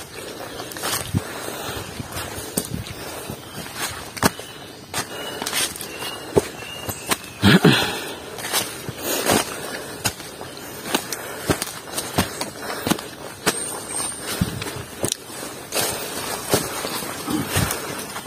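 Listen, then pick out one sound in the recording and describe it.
Leaves rustle as they brush against the person walking.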